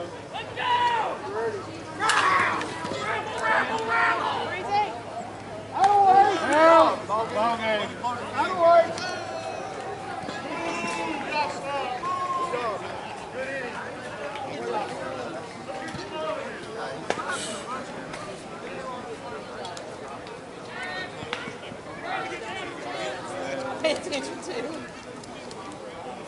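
Men shout and call out across an open field outdoors.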